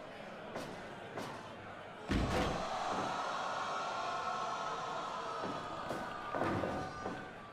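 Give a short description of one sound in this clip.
Blows land with sharp, heavy thuds.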